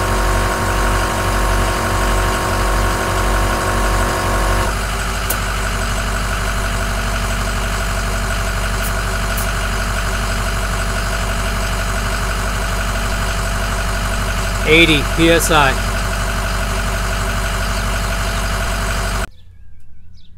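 An air compressor hums steadily nearby.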